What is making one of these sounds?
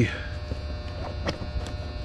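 Tools clink and rattle in a bag.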